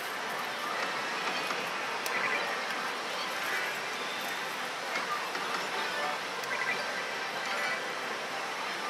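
Loud, steady din of many gaming machines fills the room.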